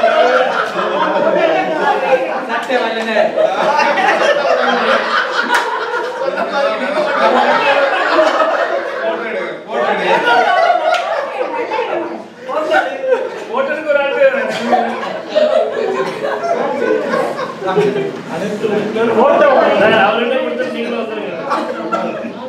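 Several men and women chatter and talk over one another nearby.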